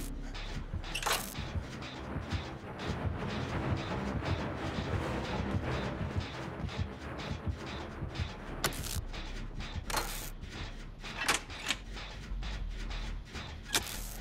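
A machine rattles and clanks as it is repaired.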